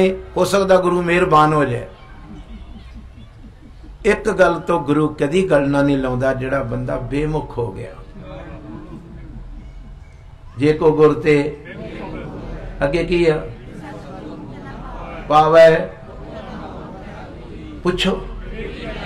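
An elderly man speaks slowly and earnestly into a microphone through a loudspeaker, with pauses between phrases.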